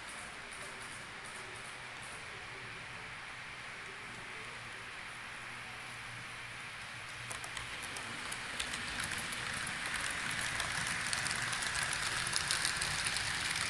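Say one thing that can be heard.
A model train hums and clicks along the tracks, growing louder as it comes close.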